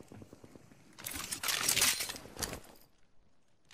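A gun clicks and rattles as it is drawn and handled.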